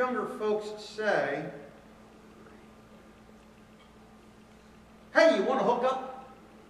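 A man speaks calmly to an audience through a microphone.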